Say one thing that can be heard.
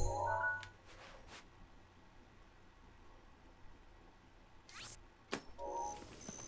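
Soft electronic chimes and clicks play as a game menu is scrolled.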